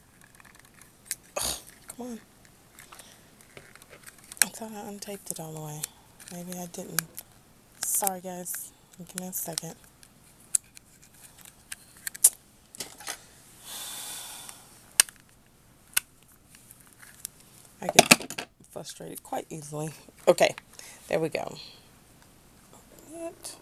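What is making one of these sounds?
A small plastic case clicks open and shut.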